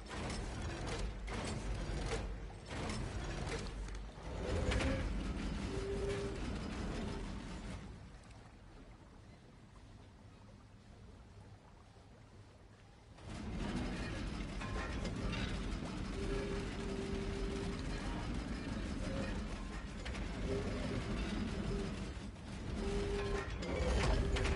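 A heavy stone mechanism grinds as it turns.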